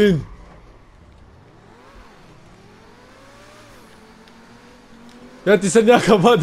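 A sports car engine revs and hums as the car drives.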